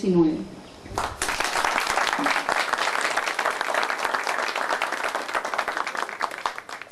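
A room full of people applauds.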